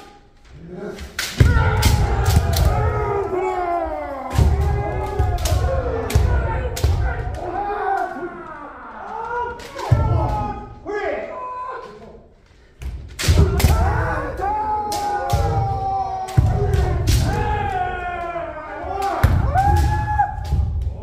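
Kendo fighters, adult men, shout drawn-out battle cries in an echoing hall.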